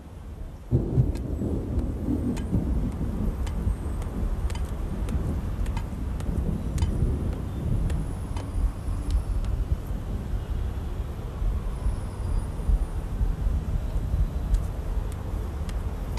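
Footsteps scuff slowly on wet cobblestones.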